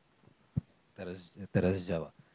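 Another man begins speaking through a microphone.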